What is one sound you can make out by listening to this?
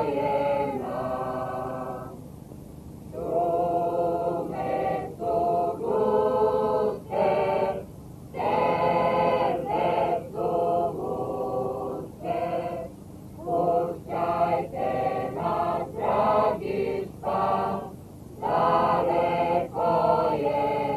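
A choir of young women and men sings a folk song.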